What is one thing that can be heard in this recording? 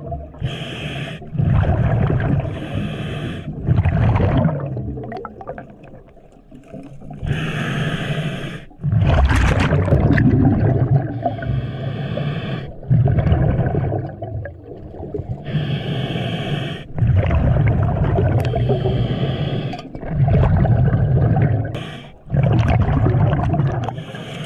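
A diver breathes in and out through a regulator underwater.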